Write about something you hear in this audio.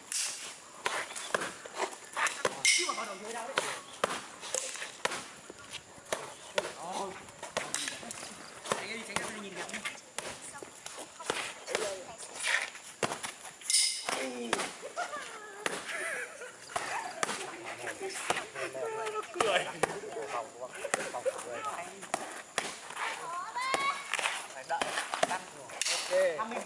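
Boxing gloves smack on focus mitts outdoors.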